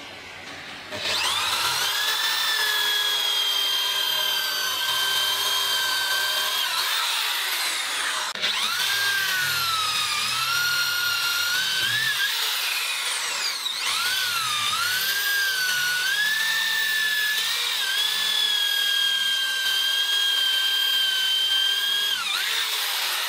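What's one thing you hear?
An electric drill whines as it bores into wood, its pitch rising and falling.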